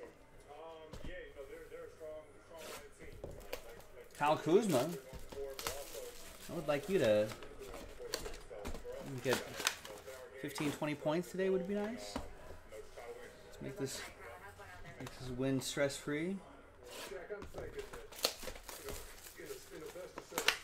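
Cardboard boxes tap and scrape on a table.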